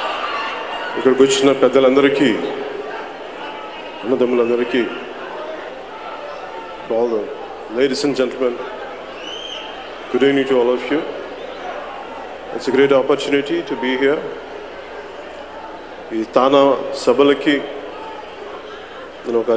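A man speaks slowly into a microphone over loudspeakers in a large echoing hall, with pauses between phrases.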